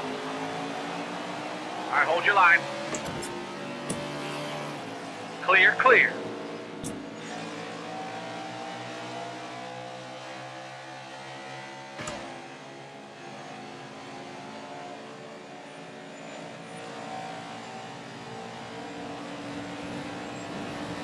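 A stock car V8 engine roars at high revs.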